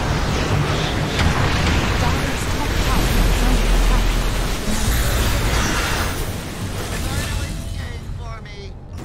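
Spell blasts and combat effects crash and whoosh in a video game battle.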